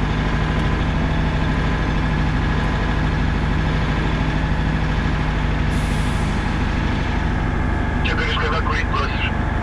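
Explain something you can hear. A truck's tyres crunch over packed snow.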